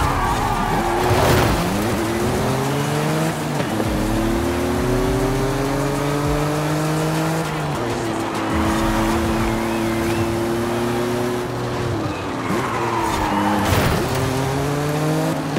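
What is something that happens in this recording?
Tyres squeal on a tarmac road while the car corners.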